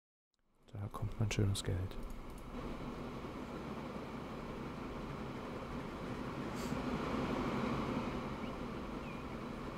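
A steam locomotive chugs steadily along the tracks.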